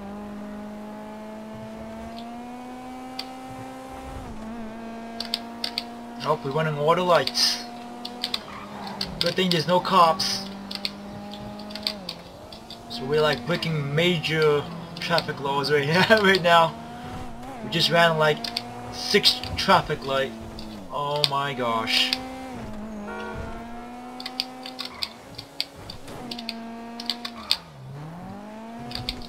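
A sports car engine hums steadily, its pitch rising and dipping as it speeds up and slows down.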